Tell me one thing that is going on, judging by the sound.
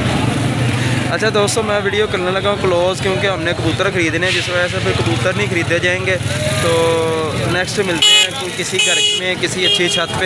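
Motorcycle engines idle and rumble nearby.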